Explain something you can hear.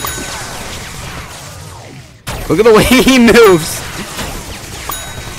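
Energy blasts crackle and whoosh in rapid bursts.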